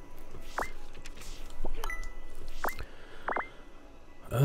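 Short electronic blips sound as a game menu is scrolled.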